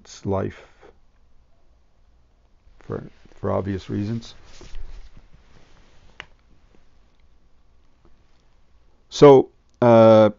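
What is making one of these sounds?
An elderly man speaks calmly nearby, in short phrases.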